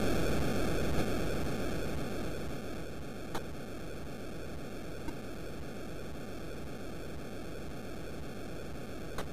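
A video game gives short sharp blips.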